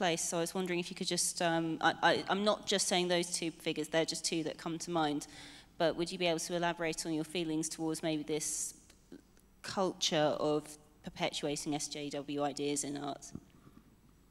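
A man speaks calmly into a microphone, heard through loudspeakers in a large room.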